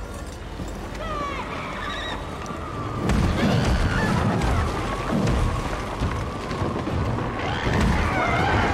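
A large creature groans and shrieks in rising and falling cries.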